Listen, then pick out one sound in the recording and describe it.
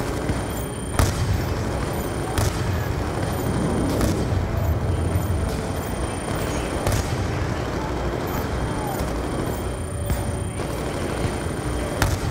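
Single rifle shots crack at intervals.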